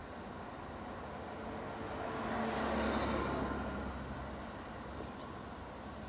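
A car drives past close by, its sound swelling and then fading.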